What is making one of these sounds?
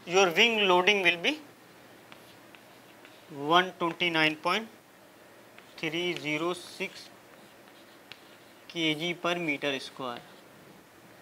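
A young man speaks calmly in short phrases.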